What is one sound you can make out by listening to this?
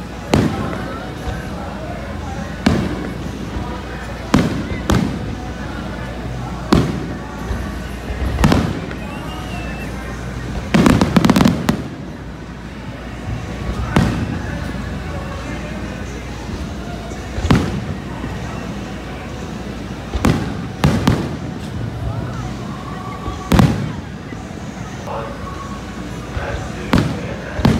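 Fireworks boom and bang loudly, echoing outdoors.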